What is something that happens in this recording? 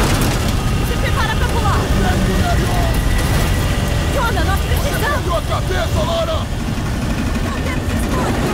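A young woman speaks urgently, straining.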